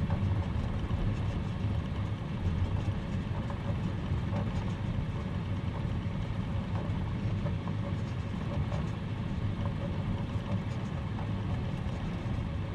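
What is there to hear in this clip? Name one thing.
Tyres rumble over a bumpy grass strip.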